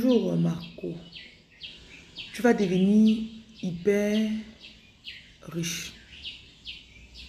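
A young woman speaks with animation, close to a phone microphone.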